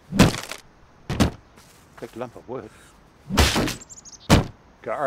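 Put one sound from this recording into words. A sledgehammer smashes into a wooden roof with heavy thuds.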